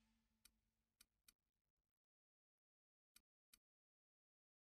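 Soft menu clicks tick a few times.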